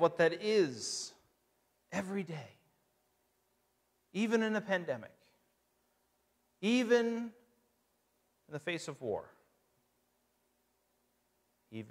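A man speaks calmly into a microphone, heard through loudspeakers in a large room, with pauses between phrases.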